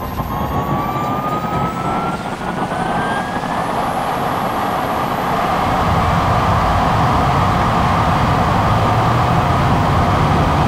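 Wind rushes loudly past a fast-moving vehicle.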